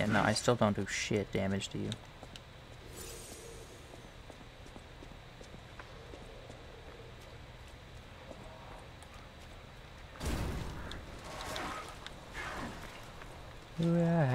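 Footsteps hurry across cobblestones.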